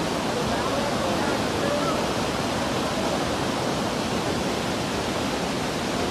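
A swollen river rushes and roars loudly close by.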